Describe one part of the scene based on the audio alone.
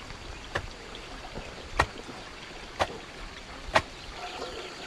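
A wooden post is knocked into the ground with sharp knocks.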